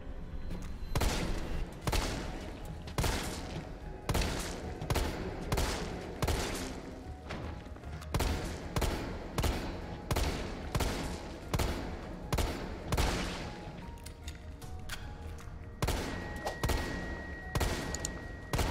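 A handgun fires shot after shot, with short echoes.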